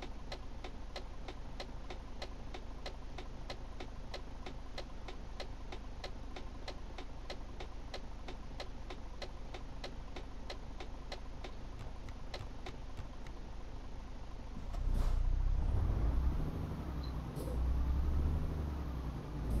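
A truck engine hums steadily and grows louder near the end.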